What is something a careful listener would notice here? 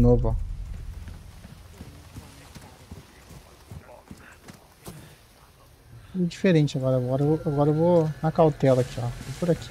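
Footsteps crunch slowly on a dirt path.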